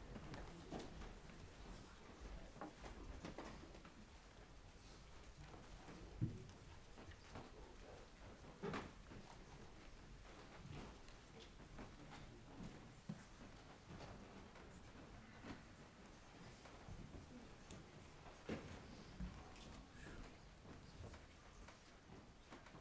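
A standing crowd shuffles and stirs quietly, with occasional soft knocks.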